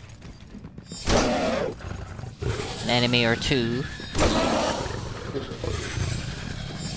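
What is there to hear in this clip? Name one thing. A large creature lets out loud, shrieking roars.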